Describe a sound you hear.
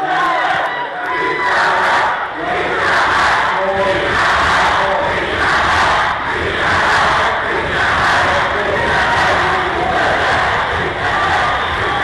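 A crowd claps and stomps in a steady rhythm.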